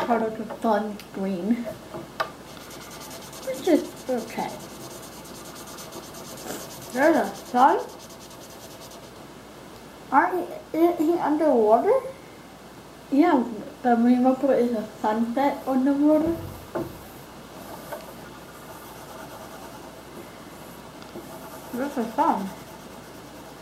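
A young girl talks casually nearby.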